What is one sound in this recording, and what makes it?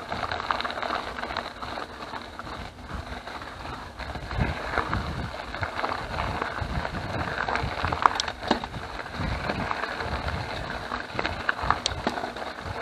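Bicycle tyres crunch over loose gravel.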